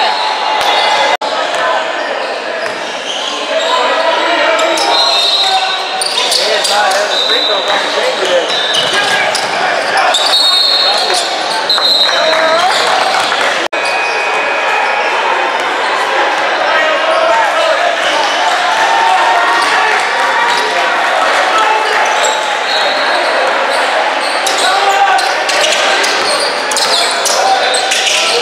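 Spectators chatter in a large echoing gym.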